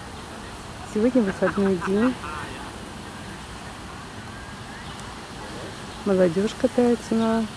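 A woman speaks nearby in short bursts.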